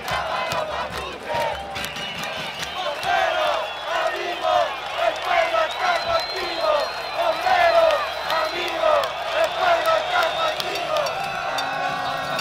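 A large crowd chants and sings loudly outdoors.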